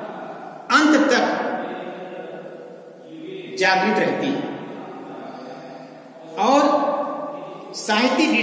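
A man lectures in a clear, steady voice, close by, in a room with some echo.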